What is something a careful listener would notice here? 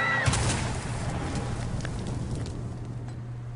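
An explosion bursts with a loud roar that slowly fades.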